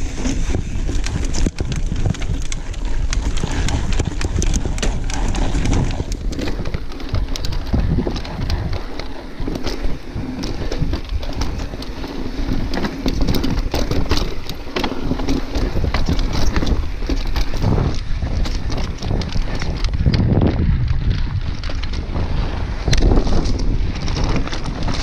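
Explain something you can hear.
A bicycle frame and chain rattle over bumps.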